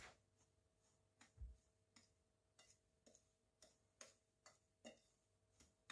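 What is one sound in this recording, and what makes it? A spoon scrapes and taps against a plate while mixing breadcrumbs.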